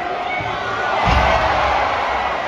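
A heavy body slams onto a wrestling mat with a deep thud.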